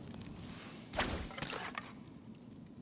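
A bowstring twangs as an arrow flies.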